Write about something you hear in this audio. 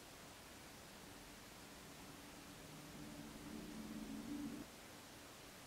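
A young woman hums softly close by.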